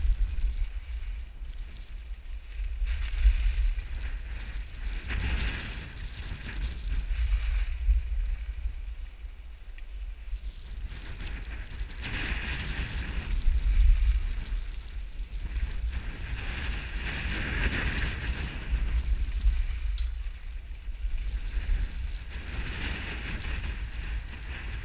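Skis scrape and hiss over packed snow in repeated turns.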